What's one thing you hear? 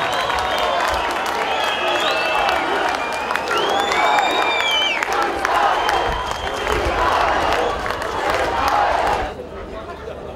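A crowd cheers loudly in an open stadium.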